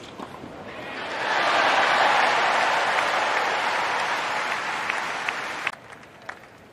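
A large crowd cheers and applauds loudly, then quickly stops.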